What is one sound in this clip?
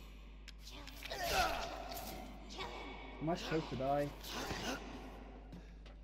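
A young woman snarls and shouts close by.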